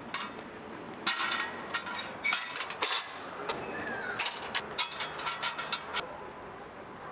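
Metal ladders clank and rattle as they are set down.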